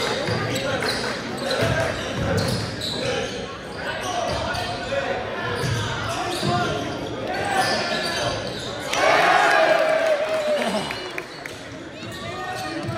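Spectators nearby cheer and shout.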